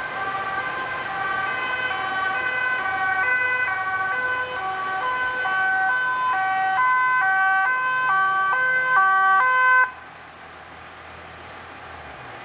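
A fire engine's engine idles nearby.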